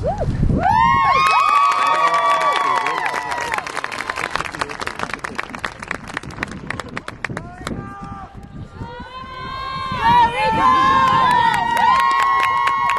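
A marching band's brass plays loud held chords outdoors.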